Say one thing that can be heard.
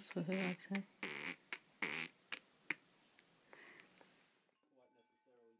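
A small bat suckles noisily.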